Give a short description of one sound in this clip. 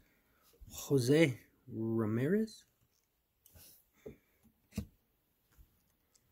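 Trading cards rustle and slide as they are flipped through by hand.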